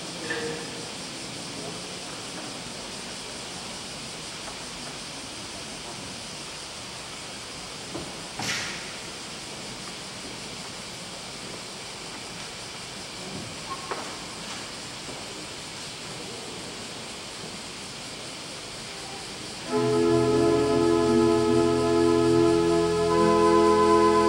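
A large crowd murmurs quietly in an echoing hall.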